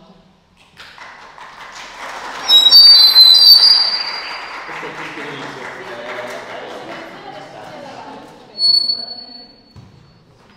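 Young women talk and laugh close by, heard through a microphone.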